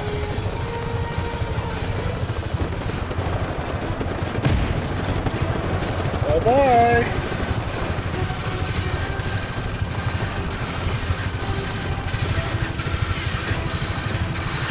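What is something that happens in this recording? A helicopter's rotor thumps steadily and loudly.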